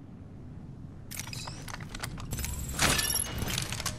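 A weapon clanks as it is swapped.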